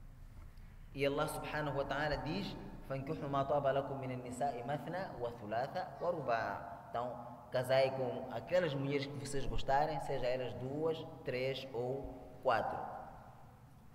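A man speaks with animation into a microphone, in a slightly echoing room.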